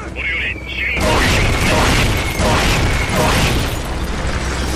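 A series of heavy explosions blasts and roars.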